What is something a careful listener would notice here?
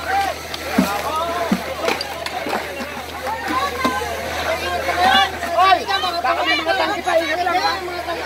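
Water splashes from buckets onto smouldering debris.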